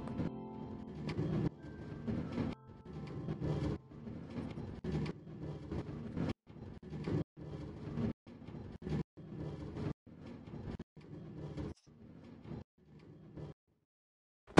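A minecart rattles along rails.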